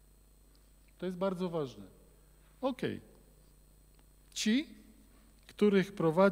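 An older man speaks slowly and expressively into a microphone, with pauses between phrases.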